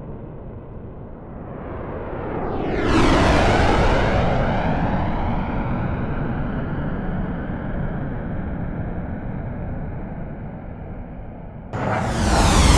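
A jet engine roars as an aircraft sweeps past overhead.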